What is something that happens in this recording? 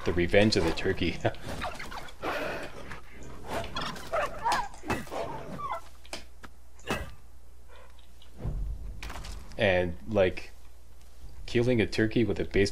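A turkey gobbles.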